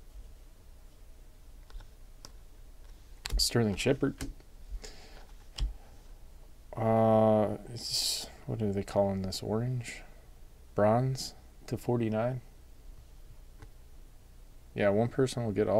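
Trading cards slide and rustle as a hand flips through them.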